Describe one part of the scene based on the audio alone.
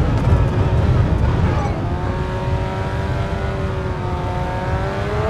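A racing car engine drops in pitch as the car slows.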